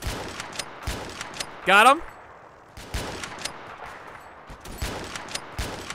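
A toy-like gun fires repeated sharp shots.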